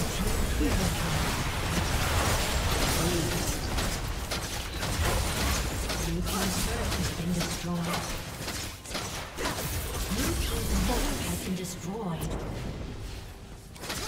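Video game spell effects crackle and boom in a busy fight.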